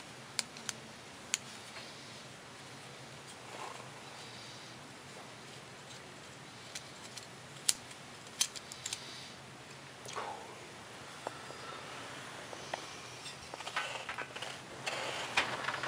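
Small metal parts click and clink in someone's hands.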